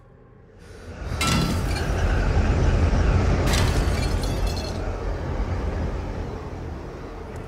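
A car wreck breaks apart with a deep rumbling crash.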